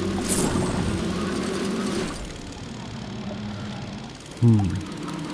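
A small underwater vehicle hums steadily as it moves through the water.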